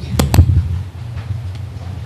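A wooden stick strikes something with sharp knocks.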